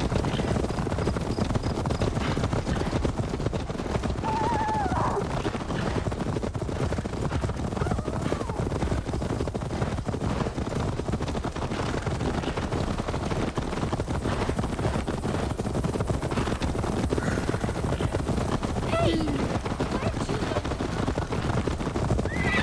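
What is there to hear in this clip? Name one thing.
Horses' hooves thud steadily on a dirt path.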